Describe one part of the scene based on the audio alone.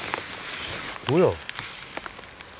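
A man exclaims in surprise from close by.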